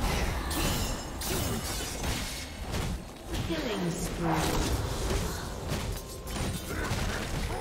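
Spell blasts and weapon strikes crash and whoosh in a fast fight in a video game.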